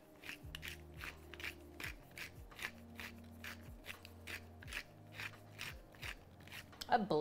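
A pepper mill grinds with quick, rhythmic crunches.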